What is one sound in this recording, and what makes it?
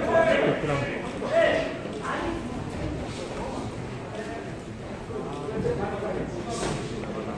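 Men shout encouragement from ringside in a large echoing hall.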